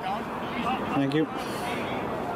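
Men shout to each other outdoors in the distance.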